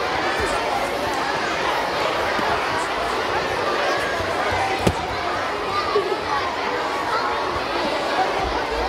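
A large crowd of children chatters loudly in a big echoing hall.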